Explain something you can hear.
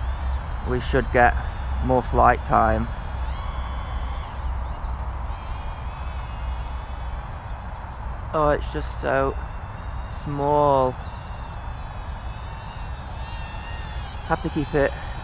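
Wind rumbles across an open field.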